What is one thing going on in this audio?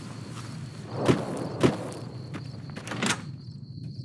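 A wooden door opens with a thud.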